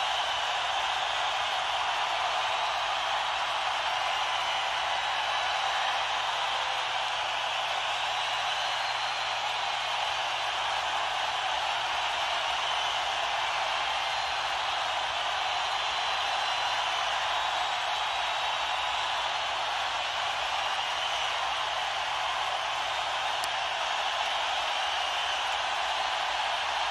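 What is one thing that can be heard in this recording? A large crowd cheers and roars in a big hall.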